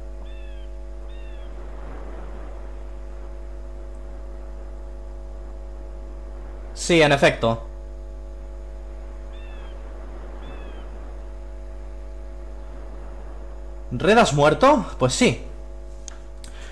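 Gentle waves wash onto a sandy shore.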